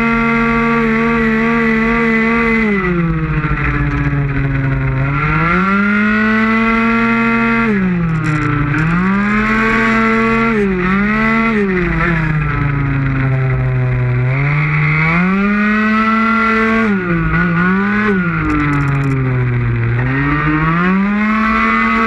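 A motorcycle engine roars loudly close by, rising and falling in pitch as it speeds up and slows down through the corners.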